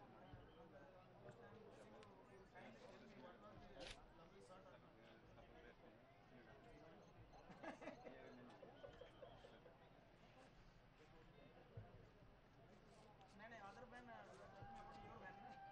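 A large crowd murmurs and chatters outdoors in the distance.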